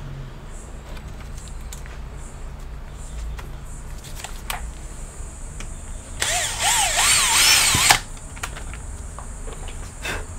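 Plastic parts of a laptop case creak and snap as they are pried apart.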